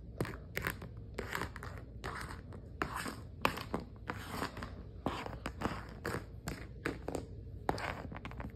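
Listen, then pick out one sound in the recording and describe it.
Small plastic toys clack and tap against a hard floor.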